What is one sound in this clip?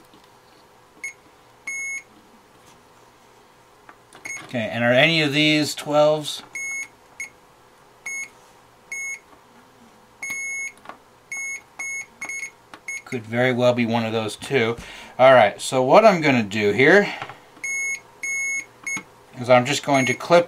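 An electronic tester beeps in short, sharp bursts.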